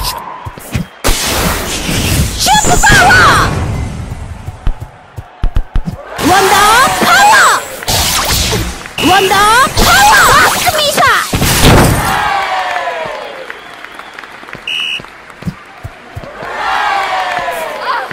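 A crowd cheers and roars loudly.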